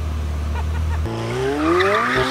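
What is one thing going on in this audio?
A sports car accelerates away with a rising roar.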